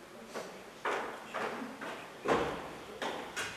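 Footsteps tap on a hollow wooden floor.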